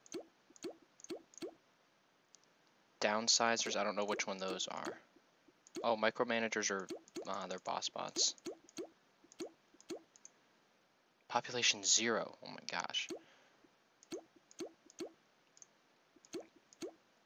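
Short soft clicks sound again and again as menu entries are selected.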